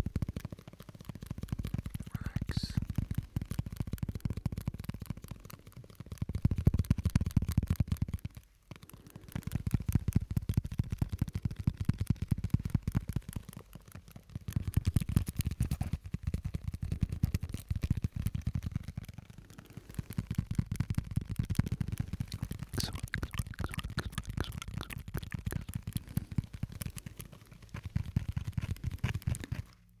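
Fingers tap and scratch on a microphone close up.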